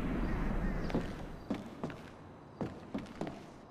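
Footsteps climb up stairs indoors.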